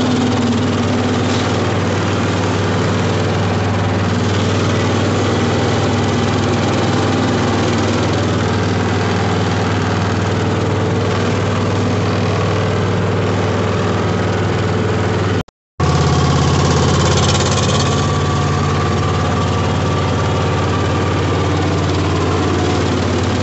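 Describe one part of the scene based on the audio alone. A small engine runs steadily and loudly close by.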